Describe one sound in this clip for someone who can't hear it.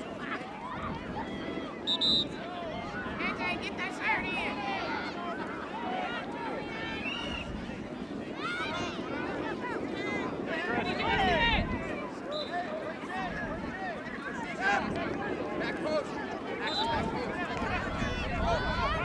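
Young players shout to one another across the field.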